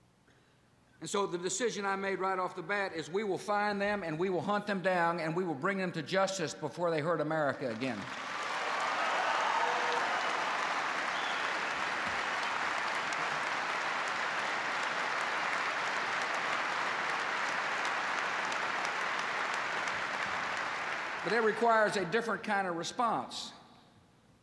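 A middle-aged man speaks forcefully into a microphone in a large echoing hall.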